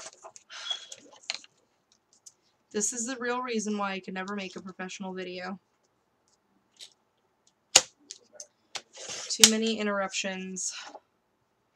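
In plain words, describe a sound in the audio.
Paper rustles as a sheet is moved.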